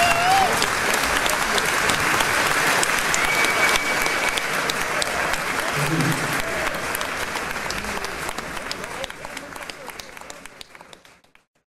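A large crowd applauds loudly, slowly fading away.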